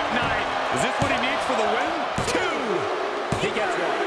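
A referee's hand slaps the ring mat several times.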